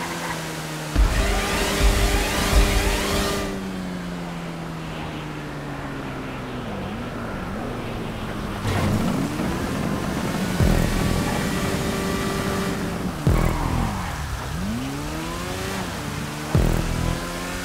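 A motorcycle lands hard with a heavy thump.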